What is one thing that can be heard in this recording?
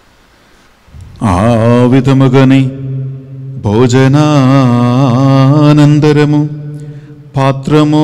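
A man sings a chant into a microphone, heard through loudspeakers.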